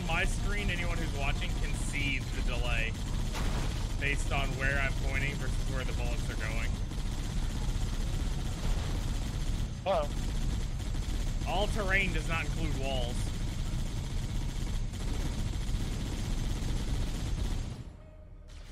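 A vehicle-mounted machine gun fires in rapid bursts.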